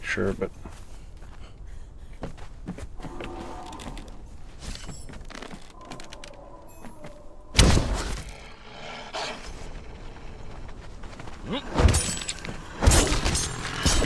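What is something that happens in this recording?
Heavy footsteps thump on wooden planks.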